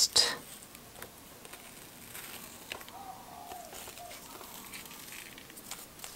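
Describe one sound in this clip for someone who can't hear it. Tape peels off paper.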